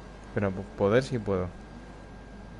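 A man speaks loudly and with emphasis, close by.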